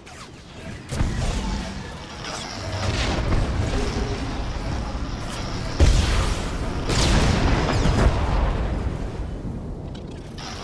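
Blaster shots fire and explosions burst in a fight.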